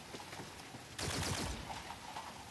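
A rifle fires a short burst.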